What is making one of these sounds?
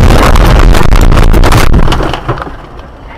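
A car crashes to a sudden stop.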